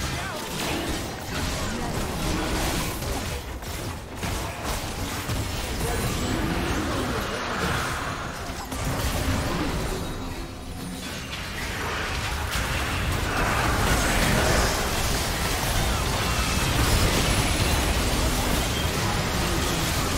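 Game spell effects burst and clash in a hectic battle.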